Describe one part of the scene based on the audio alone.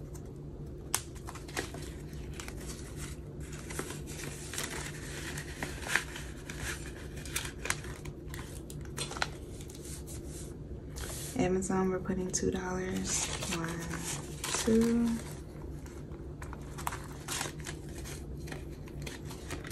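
Paper banknotes rustle and crinkle as hands handle them.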